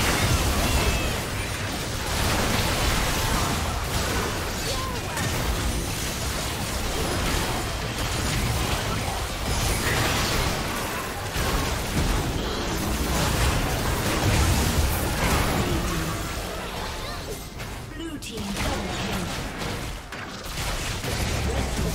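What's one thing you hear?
Game spells crackle and explode in a busy fight.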